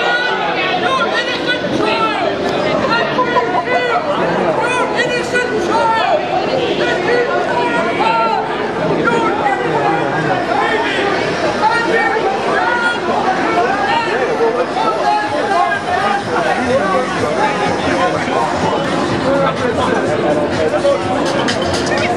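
A crowd of men and women chants and talks loudly outdoors.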